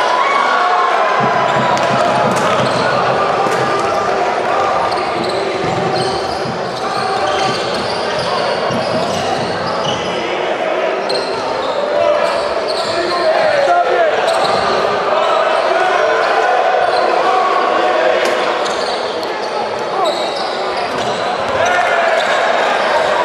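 A crowd cheers and chatters loudly in a large echoing hall.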